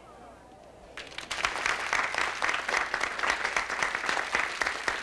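A studio audience claps and cheers.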